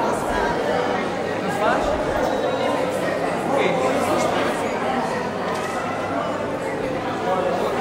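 A button accordion is played through a microphone.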